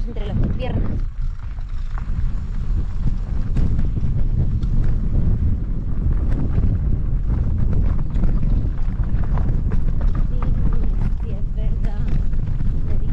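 Bike tyres crunch over a gravel trail.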